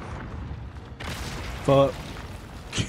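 A huge stone giant slams the ground with a deep, crashing boom.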